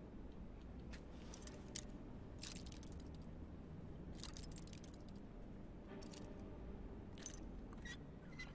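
A lockpick scrapes and clicks inside a metal lock.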